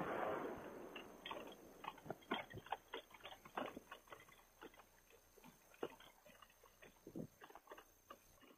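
Wheels rattle and bump over grass.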